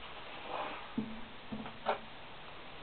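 A guitar's open strings ring briefly as the guitar is set down.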